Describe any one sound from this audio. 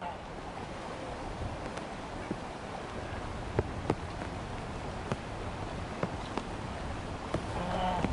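Ducks quack softly on the water.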